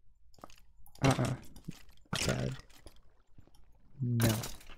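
A sword strikes a rattling skeleton.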